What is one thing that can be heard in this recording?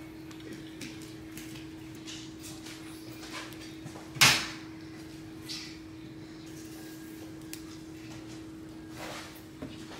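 Food is set down on a plate with soft taps.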